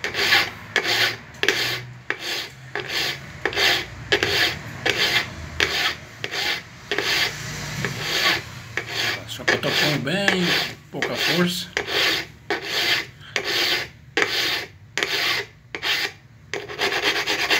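A file rasps back and forth in quick, rhythmic strokes.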